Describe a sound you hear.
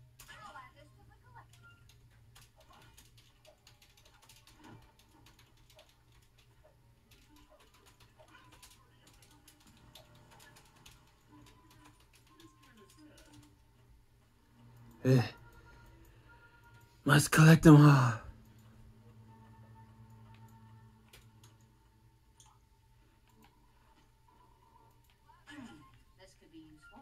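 Video game sound effects play quietly from a television.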